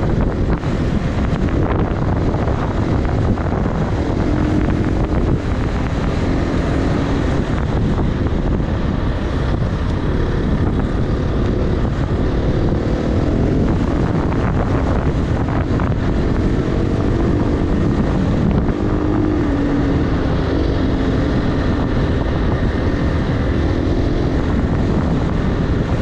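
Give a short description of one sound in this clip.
Wind buffets loudly.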